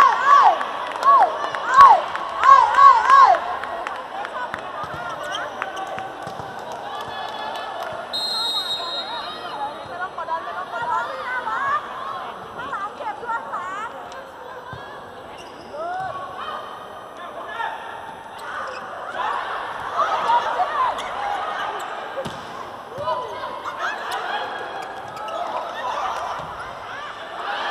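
A large crowd cheers and makes noise in an echoing arena.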